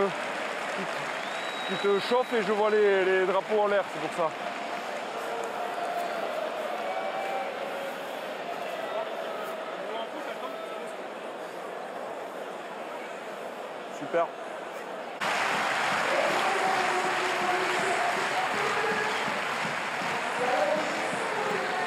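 A large crowd cheers and claps outdoors.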